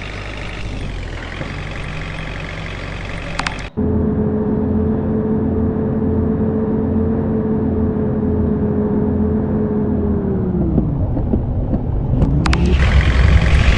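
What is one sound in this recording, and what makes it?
A bus engine hums steadily, then drops in pitch as the bus slows down.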